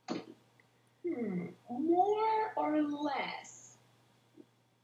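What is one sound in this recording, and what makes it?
A young woman speaks animatedly over an online call.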